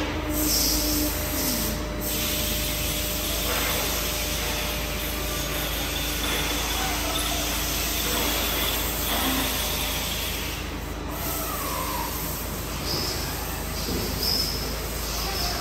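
A machine hums steadily in a large echoing hall.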